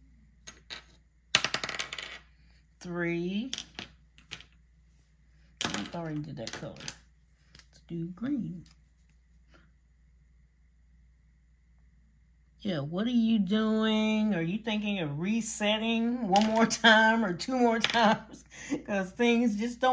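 A small die clatters across a tabletop.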